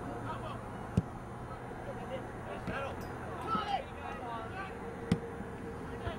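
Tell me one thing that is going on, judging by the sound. A soccer ball is kicked with sharp thuds.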